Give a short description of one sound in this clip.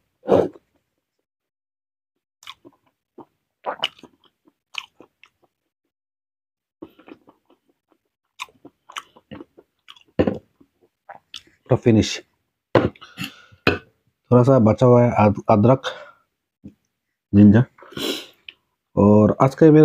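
A man chews food loudly and smacks his lips close by.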